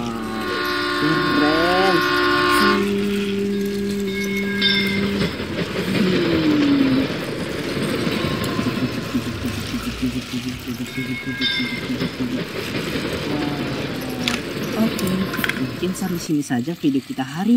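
Battery toy trains whir and rattle along plastic tracks.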